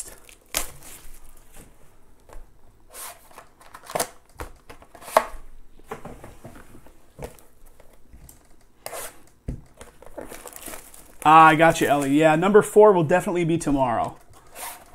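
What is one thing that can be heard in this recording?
A cardboard box rustles and knocks as hands handle it.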